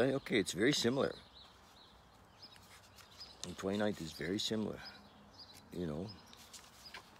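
An elderly man speaks slowly and calmly, close by, in short phrases with pauses.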